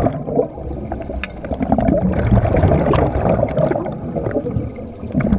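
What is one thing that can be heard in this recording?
Scuba air bubbles gurgle and rumble underwater.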